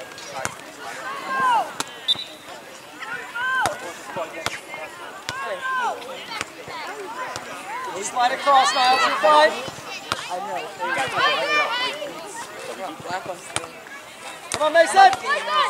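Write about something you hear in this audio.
Young players shout calls across an open field.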